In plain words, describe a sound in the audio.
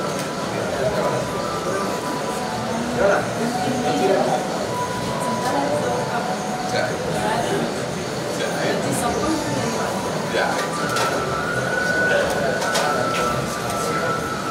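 A group of men chant steadily nearby.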